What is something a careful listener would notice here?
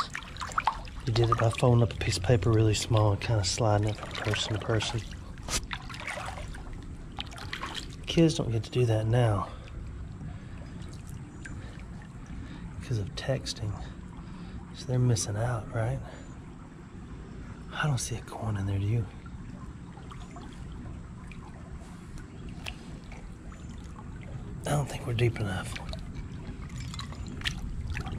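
A shallow stream trickles and babbles over stones.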